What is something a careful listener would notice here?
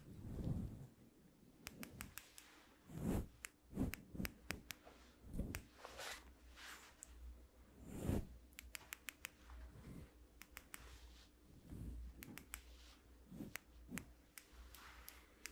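A comb scrapes and rustles against a fuzzy microphone cover.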